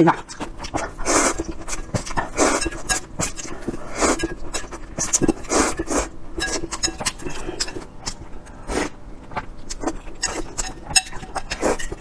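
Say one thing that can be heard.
A young woman slurps noodles loudly close to a microphone.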